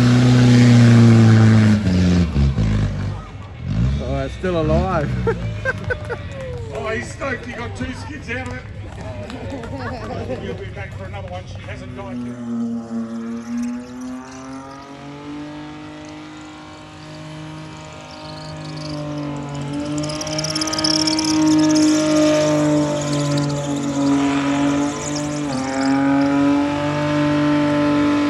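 A car engine roars and revs loudly as it spins in circles.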